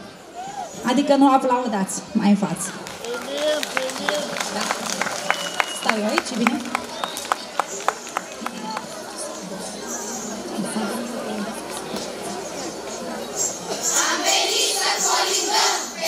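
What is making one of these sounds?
A choir of women and children sings together through loudspeakers outdoors.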